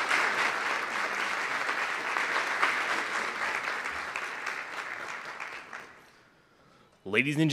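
A large crowd applauds in a big echoing hall, then the clapping fades out.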